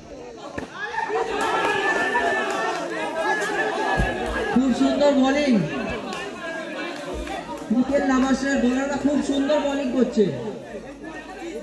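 Several men argue loudly close by.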